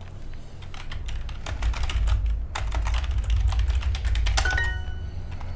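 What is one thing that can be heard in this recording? Keyboard keys click rapidly.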